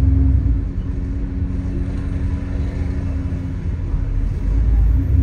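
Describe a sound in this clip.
A bus engine rumbles steadily from inside the bus.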